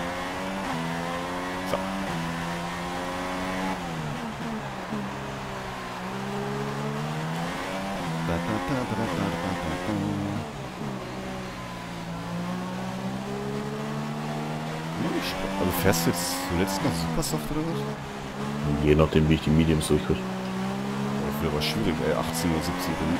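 A racing car engine whines loudly, rising and falling in pitch as it shifts gears and slows for corners.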